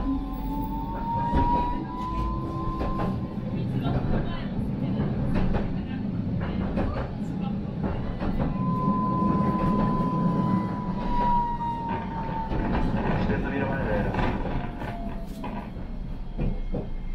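Tram wheels clatter and knock over the rail joints.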